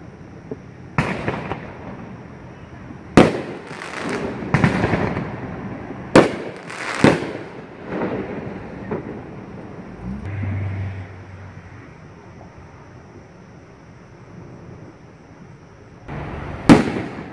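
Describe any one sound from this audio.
Fireworks burst with loud booms and crackles, echoing around.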